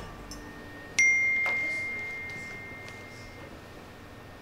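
A phone notification chimes once and rings out.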